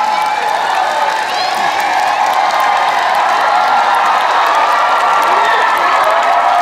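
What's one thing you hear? Men shout to the crowd through microphones.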